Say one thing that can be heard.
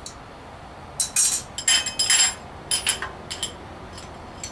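Metal parts clink and clatter as they are handled close by.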